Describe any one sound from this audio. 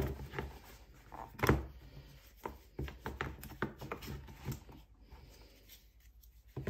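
Hands rub and slide against cardboard.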